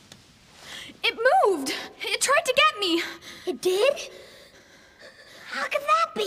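A young girl speaks in an urgent, frightened voice, close by.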